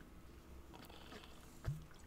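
A young man drinks and gulps from a glass.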